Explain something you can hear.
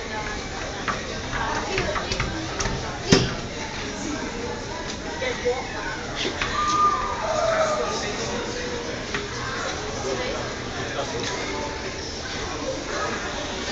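Small hands tap and slap on a glass pane.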